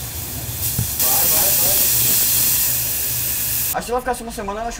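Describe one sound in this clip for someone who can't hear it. Steam hisses loudly as water hits a hot griddle.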